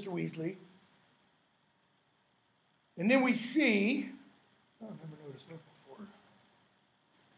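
An older man speaks calmly close by, in short phrases with pauses.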